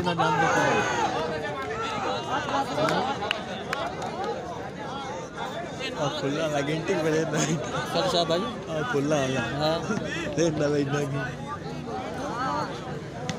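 Men call out to each other nearby.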